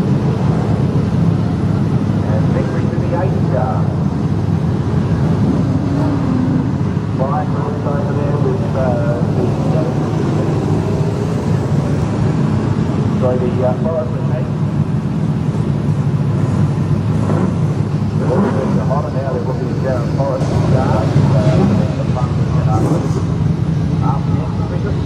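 Race car engines roar loudly and steadily nearby.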